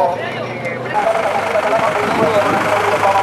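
Men in a crowd talk outdoors.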